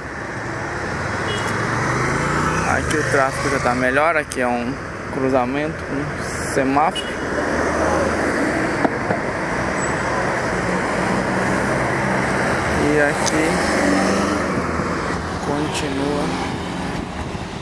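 A car engine rumbles steadily while driving along a busy street.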